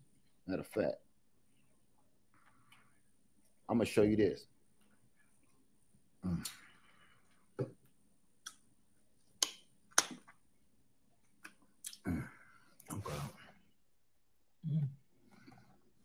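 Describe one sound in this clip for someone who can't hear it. A man chews honeycomb noisily, with wet smacking sounds.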